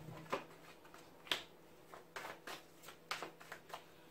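A card is laid down on a table.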